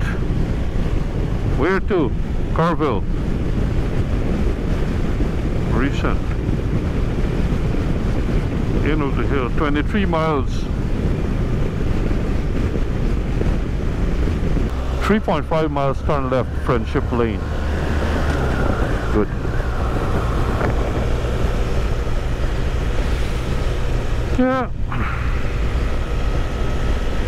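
A motorcycle engine hums and revs up and down while riding.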